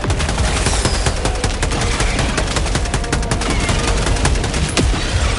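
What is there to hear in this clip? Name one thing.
A rapid-fire gun shoots in quick bursts.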